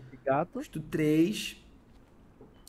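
A young man speaks with animation through a headset microphone.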